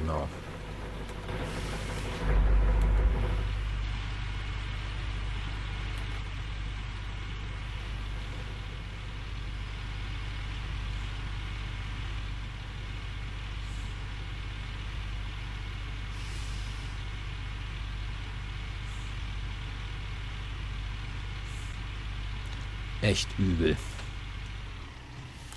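Excavator tracks clank and creak as the machine moves.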